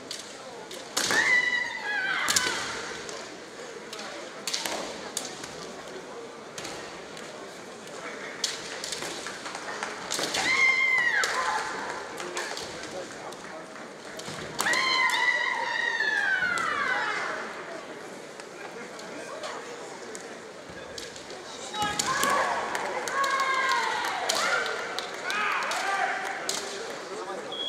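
Young men shout loud, drawn-out battle cries in an echoing hall.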